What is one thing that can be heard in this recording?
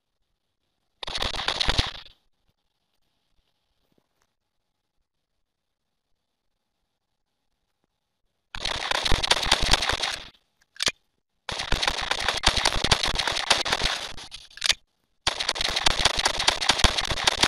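A pistol fires rapid bursts of shots.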